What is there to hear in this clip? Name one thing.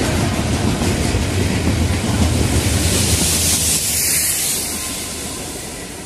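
Tank wagons rumble and clatter over the rails.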